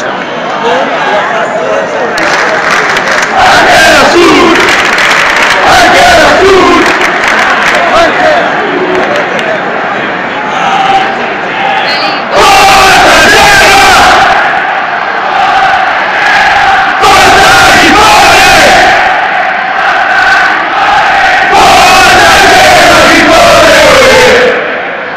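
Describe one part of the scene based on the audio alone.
A large crowd of fans chants loudly in unison in an open stadium.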